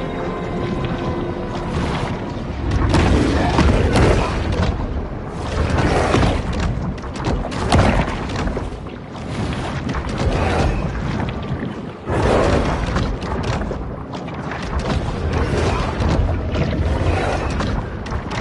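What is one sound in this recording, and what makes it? Water churns and rushes underwater.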